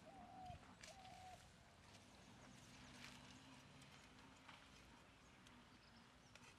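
Leaves rustle and snap softly as plants are picked by hand.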